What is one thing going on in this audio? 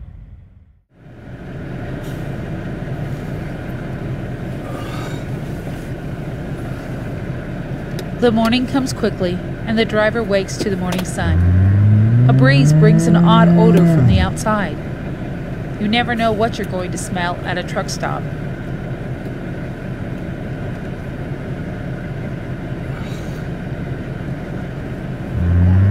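A truck engine hums steadily inside a cab.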